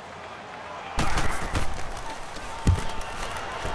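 A stadium crowd roars loudly as a play begins.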